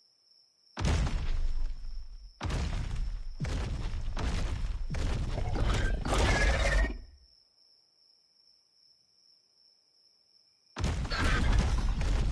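A large beast roars loudly in harsh bursts.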